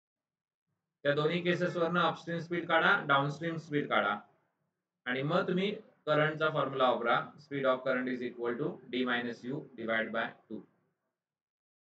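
A man explains calmly into a close microphone.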